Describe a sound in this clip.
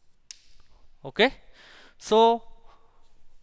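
A man speaks briefly and loudly.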